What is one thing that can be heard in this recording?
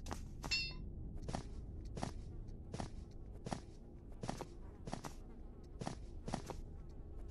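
Footsteps thud on a floor at a walking pace.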